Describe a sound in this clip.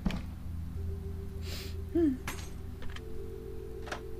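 A telephone receiver rattles as it is lifted.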